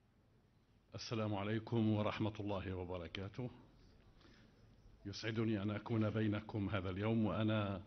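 An elderly man speaks calmly through a microphone at a podium.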